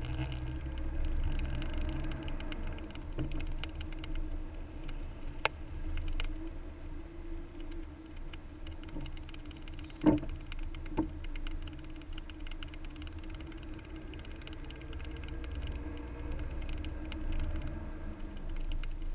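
A car engine hums steadily as the car drives slowly along.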